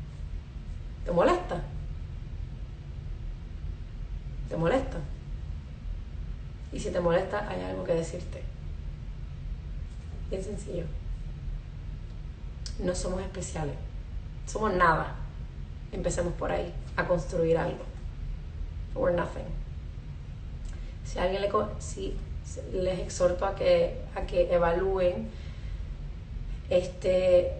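A young woman speaks calmly into a phone microphone, in short bursts with pauses.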